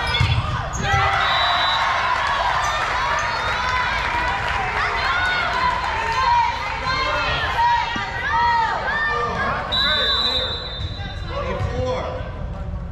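Sneakers squeak sharply and often on a hard gym floor.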